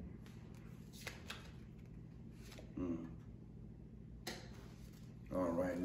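Playing cards shuffle and riffle in a man's hands.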